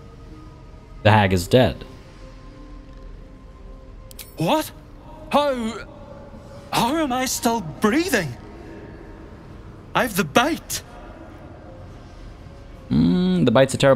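A second man speaks briefly in a low voice, close by.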